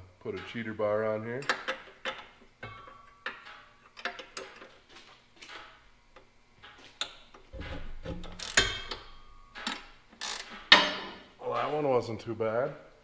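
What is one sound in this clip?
A wrench clicks and scrapes against metal.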